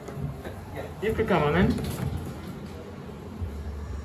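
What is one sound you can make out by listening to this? An elevator door slides shut.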